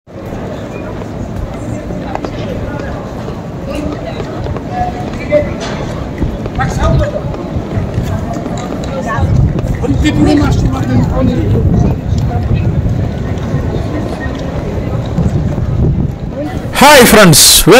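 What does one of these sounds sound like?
A crowd murmurs and footsteps shuffle outdoors on a busy street.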